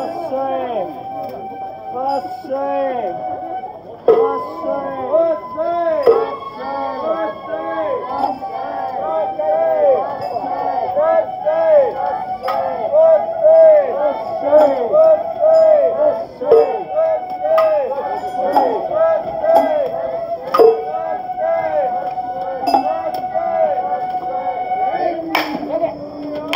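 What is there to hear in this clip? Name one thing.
Bamboo flutes play a shrill, lilting festival tune.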